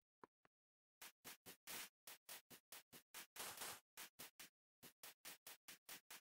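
Footsteps crunch steadily on sand and grass.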